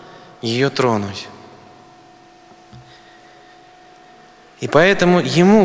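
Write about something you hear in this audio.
A middle-aged man speaks calmly into a microphone, with pauses, in a room with some echo.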